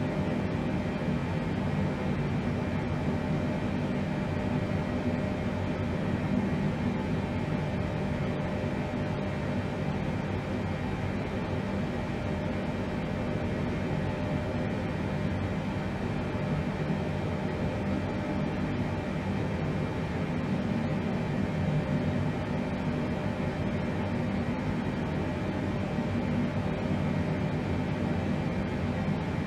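Jet engines hum and rumble steadily from inside an aircraft cockpit.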